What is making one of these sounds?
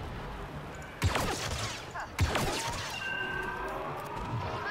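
Blaster guns fire sharp laser shots.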